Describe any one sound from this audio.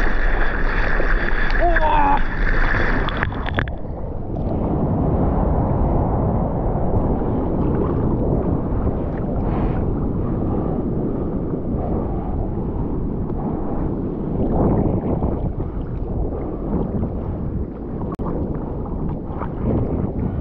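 Hands paddle and splash through the water.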